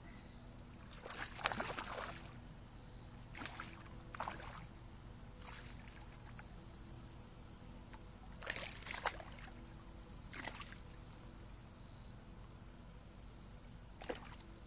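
A hooked bass thrashes and splashes at the surface of the water.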